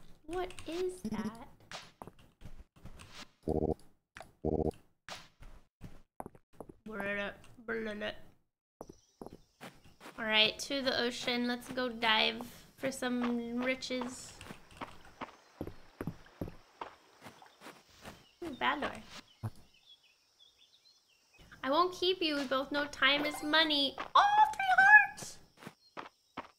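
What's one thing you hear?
A young woman talks with animation into a close microphone.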